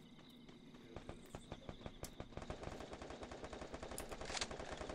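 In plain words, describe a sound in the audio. Footsteps run lightly over grass.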